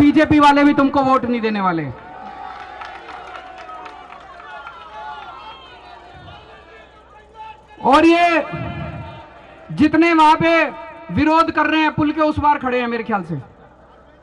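A middle-aged man speaks forcefully into a microphone over a loudspeaker outdoors.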